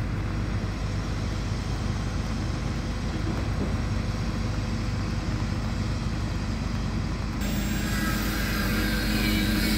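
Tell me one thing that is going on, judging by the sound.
A crane's diesel engine rumbles steadily.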